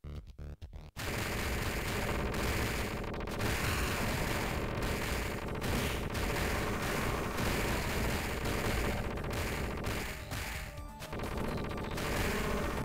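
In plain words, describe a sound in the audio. Punches and kicks thud in a video game.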